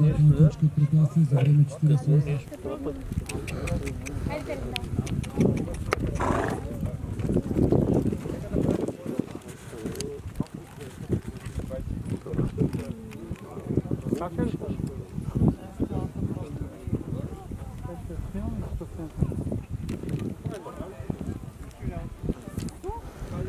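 Horse hooves thud on grass.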